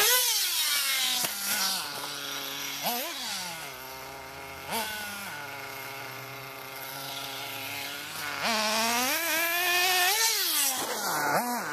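A small remote-control car engine whines, revving up and down.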